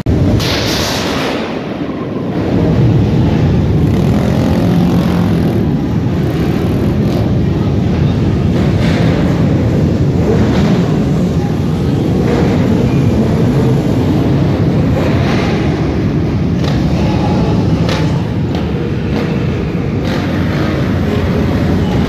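Motorcycle engines roar and rev loudly nearby.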